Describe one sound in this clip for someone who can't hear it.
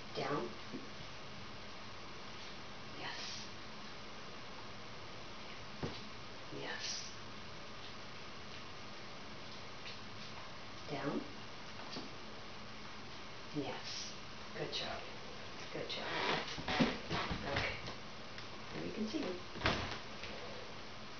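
A woman gives short, upbeat commands to a dog close by.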